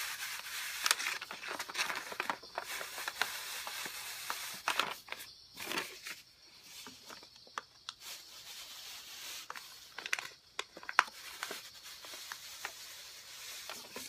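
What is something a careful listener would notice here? A steam iron hisses as it presses against a carpet.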